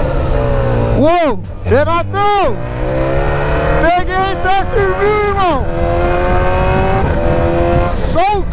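A motorcycle engine revs up and down sharply in quick bursts.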